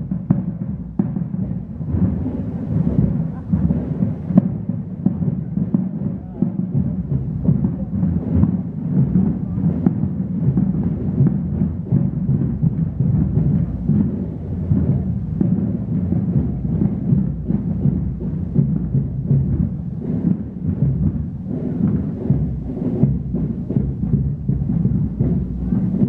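Footsteps of a procession shuffle over paving stones outdoors.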